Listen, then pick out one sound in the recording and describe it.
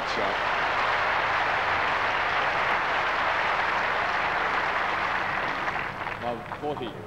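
A large crowd applauds loudly outdoors.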